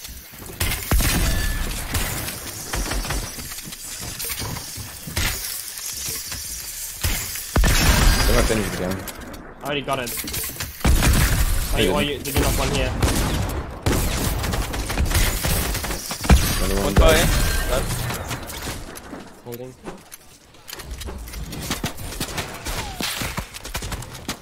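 Game building sounds clatter and thud rapidly.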